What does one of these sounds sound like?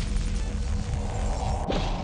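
An electric weapon discharges with a crackling burst.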